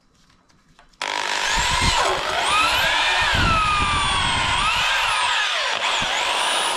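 A drill whines as it bores into wood.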